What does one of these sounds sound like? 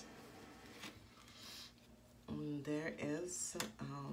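Playing cards slide and tap on a table.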